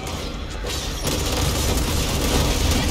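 A blast booms and crackles.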